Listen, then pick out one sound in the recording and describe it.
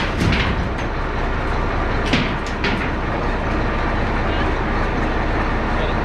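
Sheet metal creaks and rattles.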